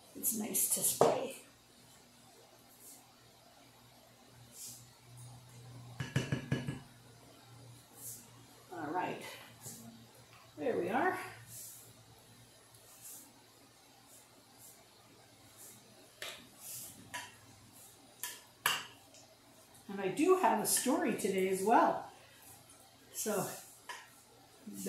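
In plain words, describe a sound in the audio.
A utensil clinks and scrapes against a dish.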